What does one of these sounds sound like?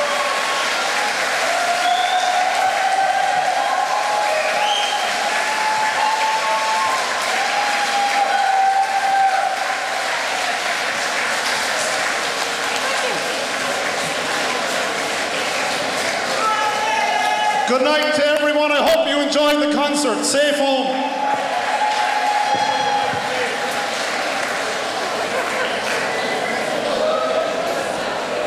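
An orchestra plays loudly in a large echoing hall.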